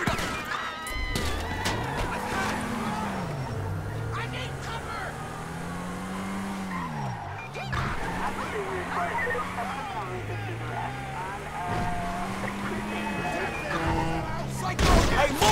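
A car engine revs up and down as the car drives off.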